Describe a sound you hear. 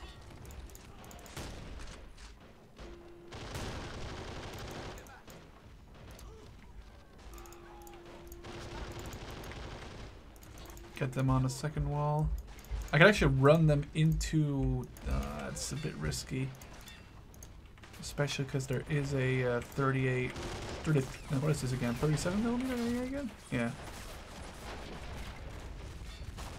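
Gunfire crackles in short bursts.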